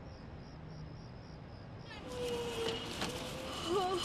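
Paper bank notes rustle as they are counted.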